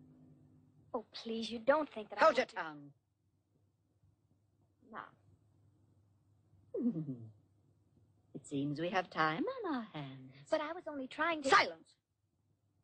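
A young woman speaks gently.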